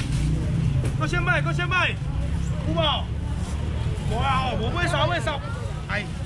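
A young man calls out loudly to customers.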